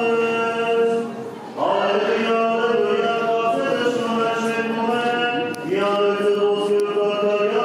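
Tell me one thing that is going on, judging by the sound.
A man chants in long, sustained notes in a large echoing hall.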